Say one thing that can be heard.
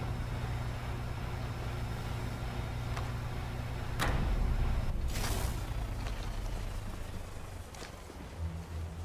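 A generator hums low and steadily.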